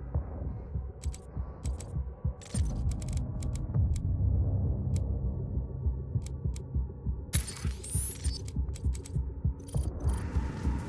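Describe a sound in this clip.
Short electronic clicks sound in quick succession.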